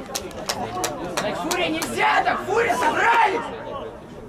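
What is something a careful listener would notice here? Young men shout and cheer in celebration outdoors.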